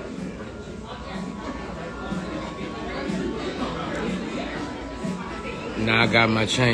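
A man talks casually, close to a phone microphone.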